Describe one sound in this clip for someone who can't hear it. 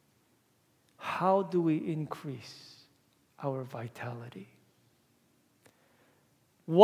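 A young man speaks calmly in a room with a slight echo.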